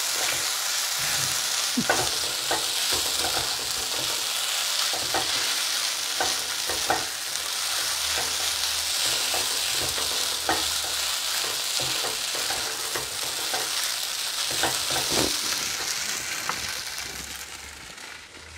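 Food sizzles loudly in a hot pan, then fades.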